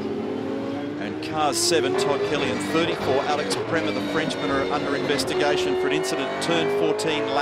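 A racing car engine roars loudly up close.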